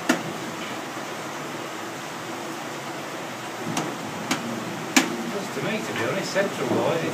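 Wooden gears knock and clatter as they turn.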